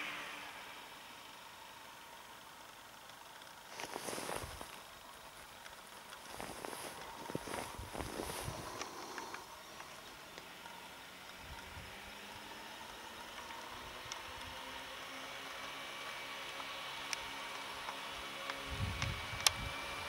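A snowmobile engine drones and grows louder as it approaches.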